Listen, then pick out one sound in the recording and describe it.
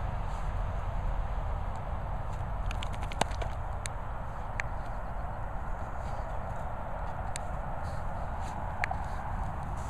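Dogs scuffle and paw at loose dirt.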